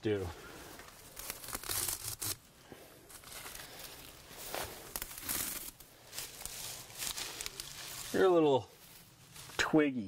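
Leafy plants rustle as a man picks them.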